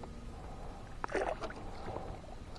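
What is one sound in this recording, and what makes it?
A landing net splashes into water.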